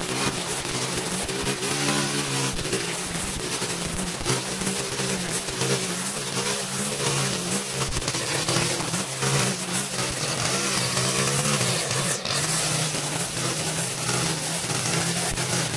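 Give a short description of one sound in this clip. A string trimmer line whips and tears through tall grass.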